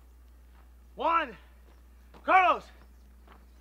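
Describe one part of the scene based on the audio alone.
A man shouts loudly outdoors.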